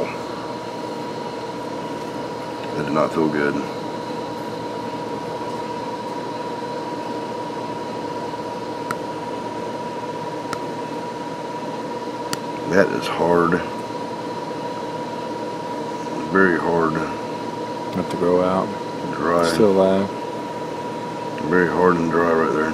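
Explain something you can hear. A small metal pick scrapes softly at a toenail.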